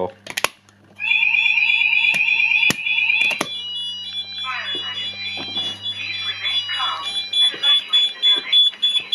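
A fire alarm sounds with a loud, shrill tone.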